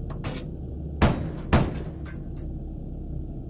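A shell explodes against a tank.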